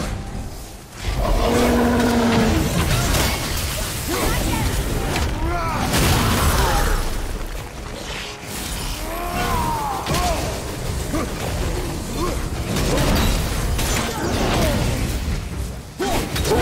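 An axe strikes and clashes with loud impacts.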